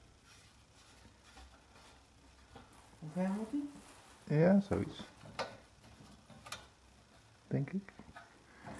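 A metal stand clicks and knocks as it is handled.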